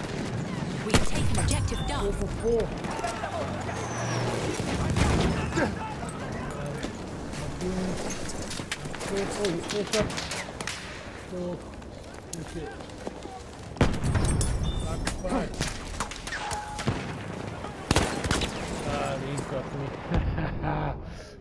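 Explosions rumble and boom nearby.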